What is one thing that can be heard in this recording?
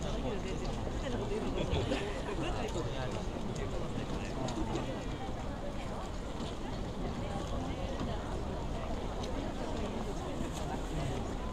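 A crowd of people chatters and murmurs at a distance outdoors.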